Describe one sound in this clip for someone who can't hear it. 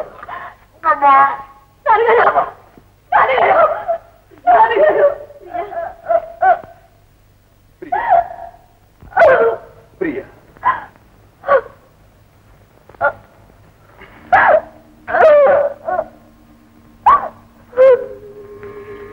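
A woman wails and cries out loudly in grief.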